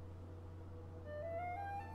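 A flute plays a short rising run of notes.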